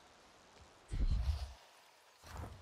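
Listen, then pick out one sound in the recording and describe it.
A deep magical whoosh bursts and fades.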